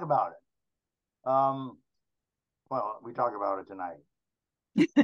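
An elderly man speaks through an online call.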